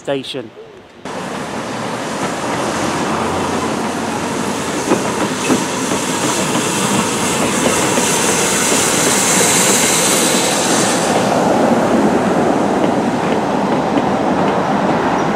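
A steam train rolls past on the rails with a loud rushing rumble.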